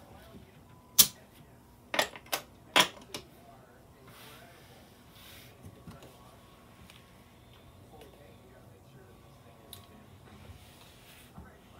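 Casino chips click and clatter as a dealer stacks and moves them.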